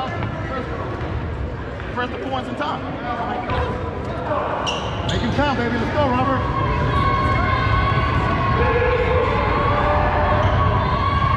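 Spectators murmur and call out in the stands.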